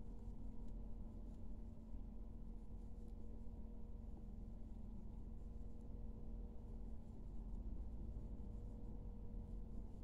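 A crochet hook softly clicks and scrapes against yarn.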